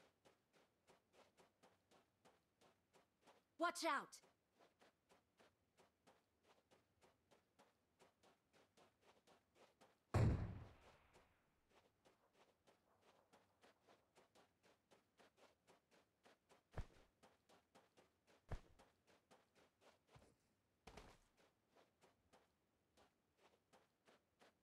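Footsteps run on sand.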